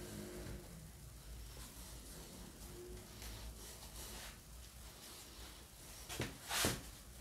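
A wooden panel knocks and scrapes against a door frame.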